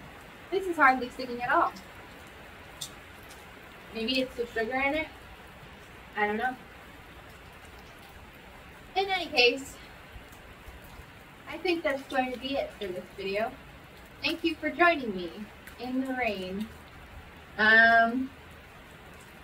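A young woman talks expressively in bursts, close by.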